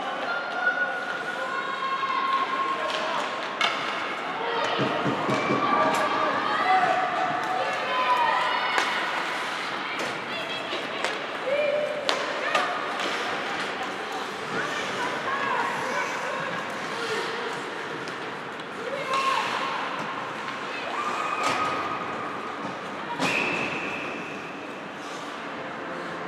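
Young players shout and call out across the rink.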